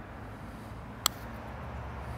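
A golf club clips a ball with a short, sharp click.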